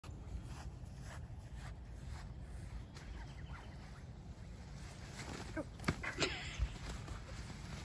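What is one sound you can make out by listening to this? Nylon fabric rustles as a hammock swings and takes a person's weight.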